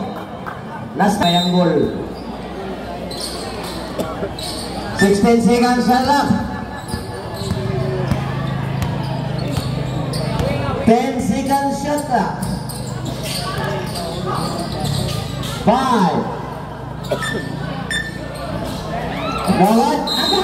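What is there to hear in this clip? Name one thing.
A crowd of spectators chatters and cheers around an outdoor court.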